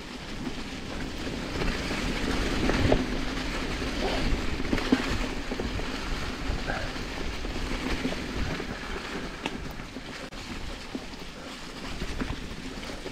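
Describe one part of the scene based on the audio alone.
Wind rushes past a moving bike.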